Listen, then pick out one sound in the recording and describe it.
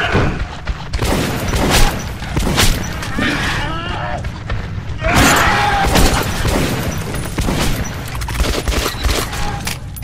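Shotgun blasts ring out loudly, one after another.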